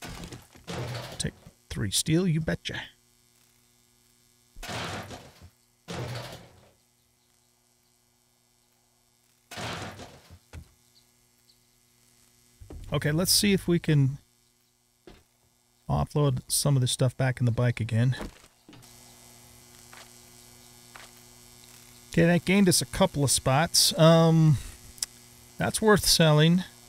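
A young man talks casually into a microphone, in short bursts with pauses.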